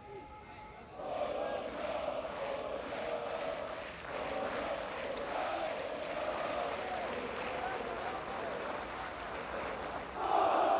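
A large crowd cheers and chants steadily in a stadium.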